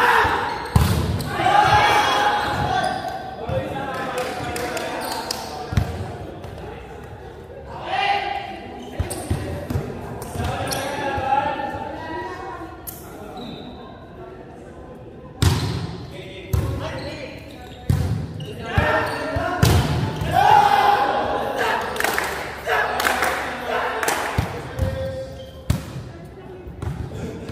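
A volleyball is hit with sharp slaps in a large echoing hall.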